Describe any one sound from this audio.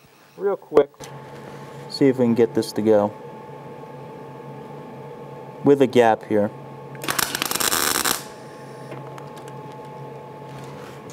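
An electric welder crackles and hisses.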